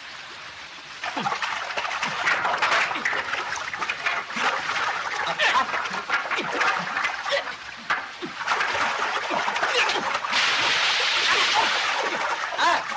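People splash and thrash in rough water.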